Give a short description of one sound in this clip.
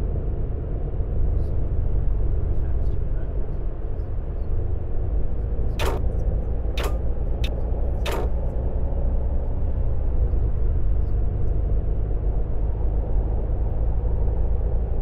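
Tyres roar on a road.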